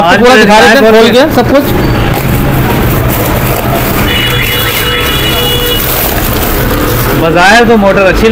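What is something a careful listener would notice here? Plastic wrapping rustles as a man unpacks a box.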